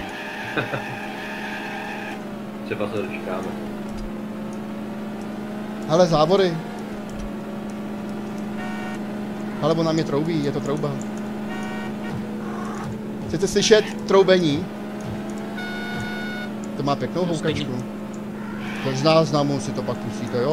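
A car engine hums and rises in pitch as it speeds up, dropping as gears change.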